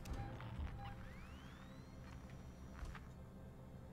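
A handheld motion tracker beeps softly.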